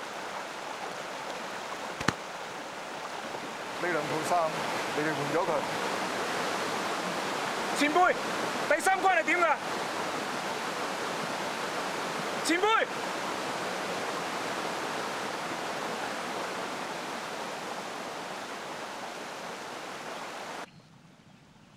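A stream rushes and splashes over rocks nearby.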